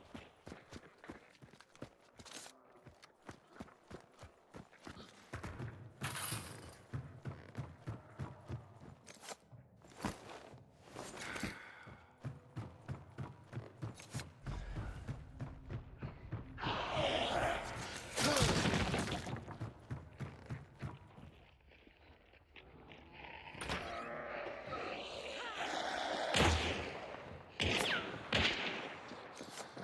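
Footsteps thud steadily on wooden floorboards.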